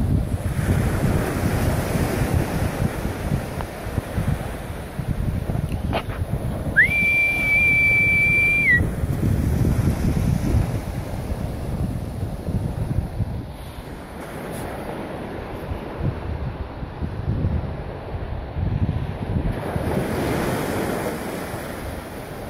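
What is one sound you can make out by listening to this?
Wind blows hard against the microphone outdoors.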